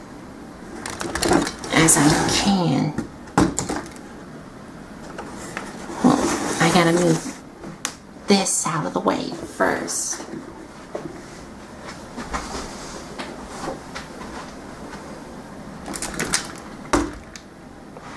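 Plastic toy parts click and knock as hands move a figure.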